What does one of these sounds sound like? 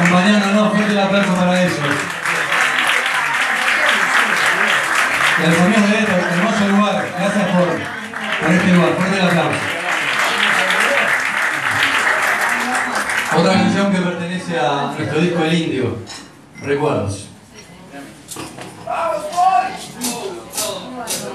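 Electric guitars play loudly.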